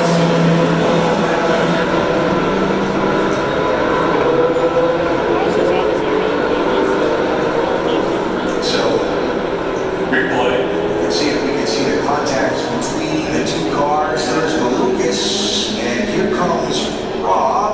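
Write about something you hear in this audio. A crowd of spectators murmurs nearby.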